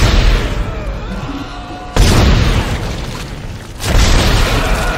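A gun fires heavy blasts that echo and ring out.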